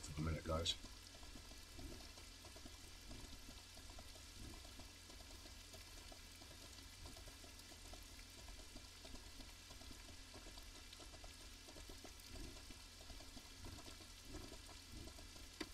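A horse's hooves thud softly on the ground as it walks.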